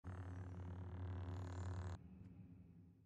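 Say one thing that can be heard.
A lightsaber hums steadily, low and buzzing.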